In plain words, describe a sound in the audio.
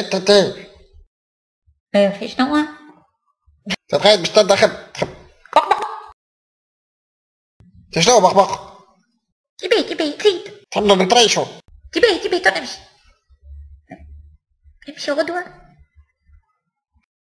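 Hens cluck in short bursts.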